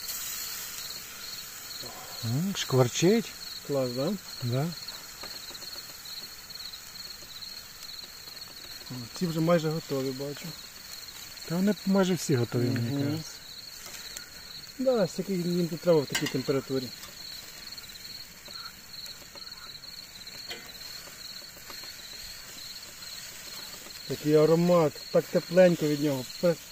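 Metal tongs clink and scrape against a grill rack.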